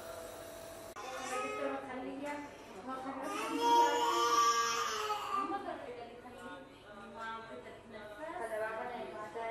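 A baby cries loudly nearby.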